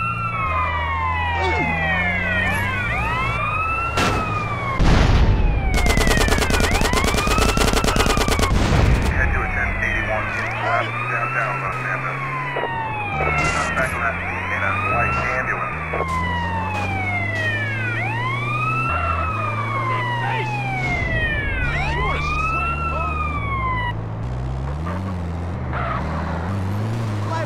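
An ambulance siren wails up and down over and over.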